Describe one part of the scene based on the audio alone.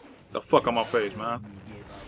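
A fireball bursts with a roar.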